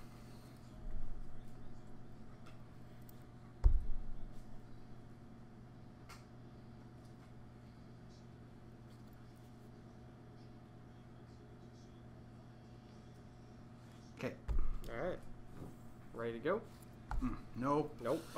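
Small plastic pieces tap and knock on a tabletop.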